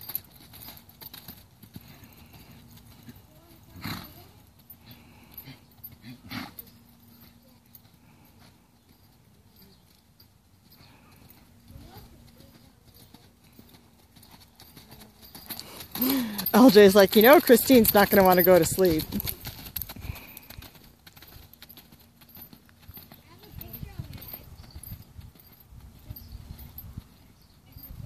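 A horse's hooves thud at a lope on soft dirt.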